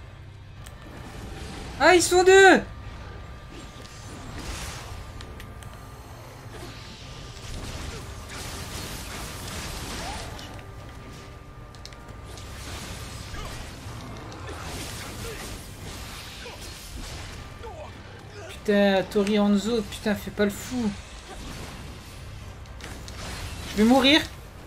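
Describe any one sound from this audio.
Swords clash and slash in a fight.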